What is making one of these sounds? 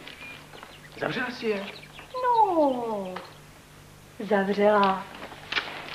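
A young woman speaks playfully nearby.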